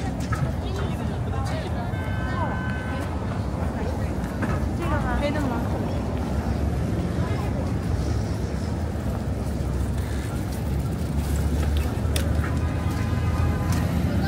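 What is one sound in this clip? Scooters and bicycles roll past close by.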